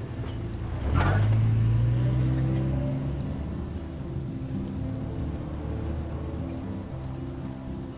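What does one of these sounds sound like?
A car engine starts and rumbles steadily as the car drives off.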